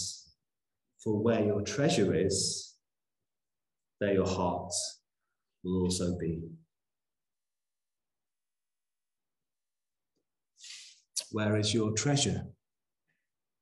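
A man speaks expressively in short phrases through a microphone, heard over an online call.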